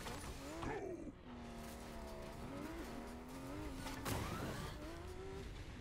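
A car engine revs and hums.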